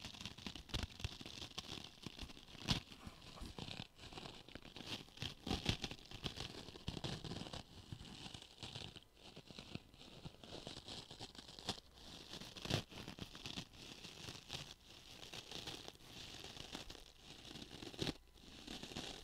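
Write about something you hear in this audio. A man whispers softly close to a microphone.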